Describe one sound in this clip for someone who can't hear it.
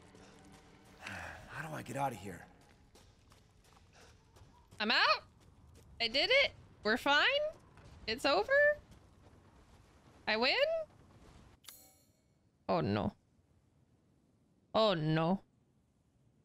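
A young woman talks in short, lively bursts close to a microphone.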